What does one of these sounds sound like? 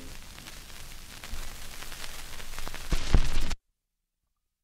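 A gramophone record crackles and pops with surface noise, louder near the end, then stops.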